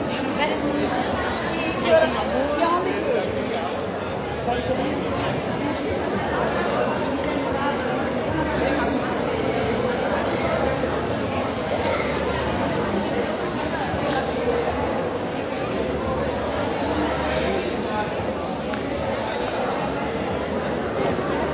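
A man speaks through a microphone over loudspeakers.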